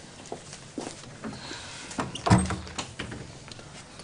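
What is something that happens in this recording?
A door handle clicks as a door is pulled.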